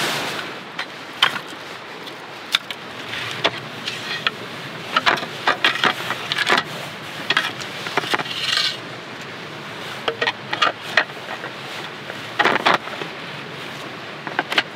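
Wooden boards knock and clack together as they are fitted.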